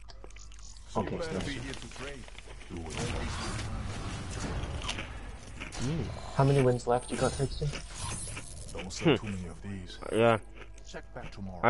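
Electronic whooshes and chimes sound as game cards are revealed.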